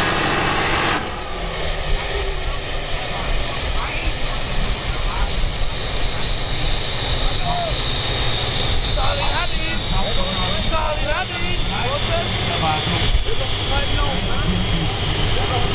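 A heavy tractor engine rumbles at idle as the tractor rolls to a stop.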